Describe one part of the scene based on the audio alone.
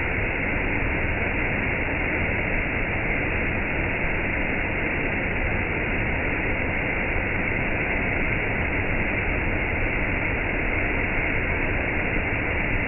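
A waterfall rushes and splashes steadily over rocks close by.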